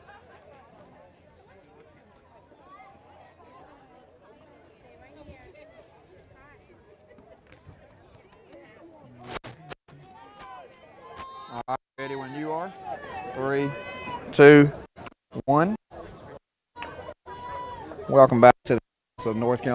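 A crowd of spectators murmurs and chatters outdoors.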